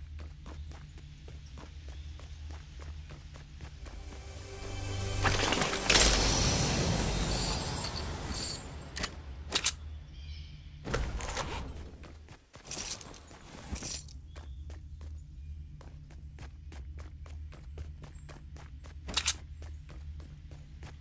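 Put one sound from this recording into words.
A game character's footsteps patter quickly on a hard floor.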